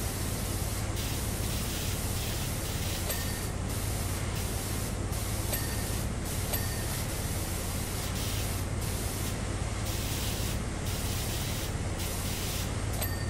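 A pressure washer sprays a steady hissing jet of water.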